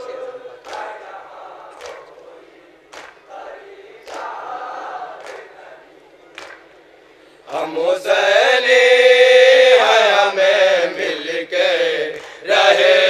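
A crowd of men beats their chests in a steady rhythm.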